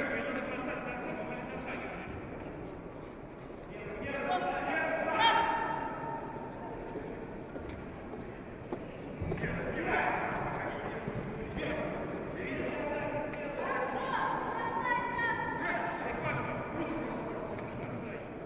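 Men shout from the sidelines in a large echoing hall.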